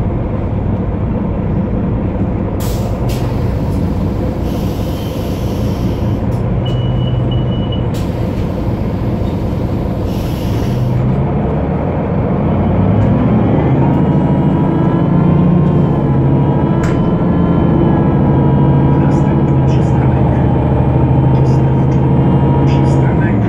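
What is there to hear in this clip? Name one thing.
A diesel city bus engine drones, heard from inside the bus.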